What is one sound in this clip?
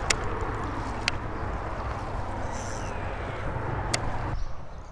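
A fishing reel clicks as a line is cast and reeled.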